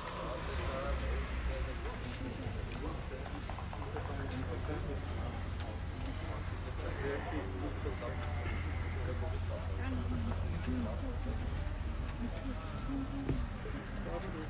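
A saxophone quartet plays a tune outdoors.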